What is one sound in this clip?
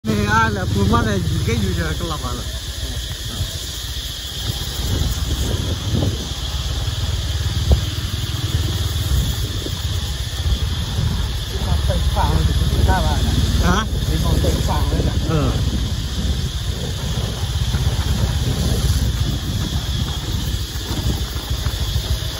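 Footsteps crunch on dry leaves along a path outdoors.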